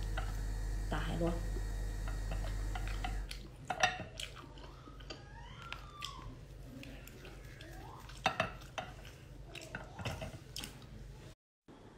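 A young woman chews and slurps food close up.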